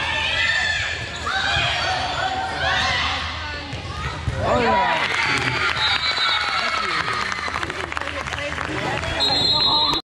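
A volleyball is hit with a slap.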